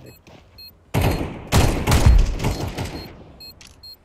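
A pistol fires two sharp shots.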